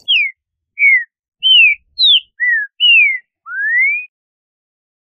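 A bird sings a series of clear, sliding whistled notes.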